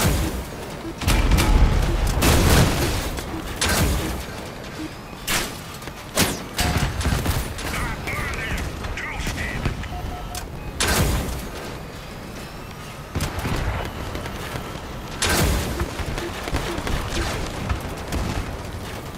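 A heavy armored vehicle engine rumbles.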